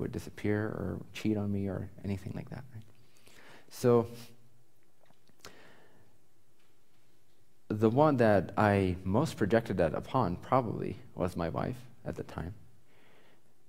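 A young man speaks calmly into a close microphone, with pauses.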